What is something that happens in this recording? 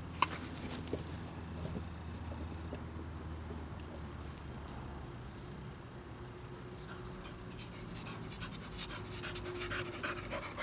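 A dog's paws patter and rustle through grass as it runs.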